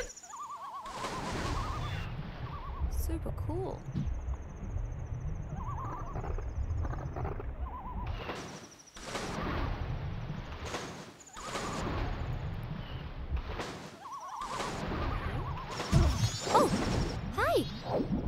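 Water splashes and gurgles as a swimmer paddles.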